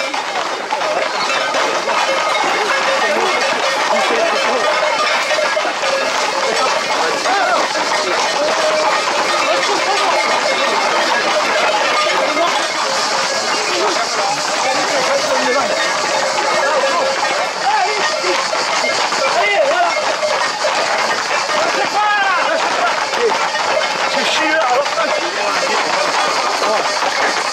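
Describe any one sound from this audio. Many feet run on a paved road.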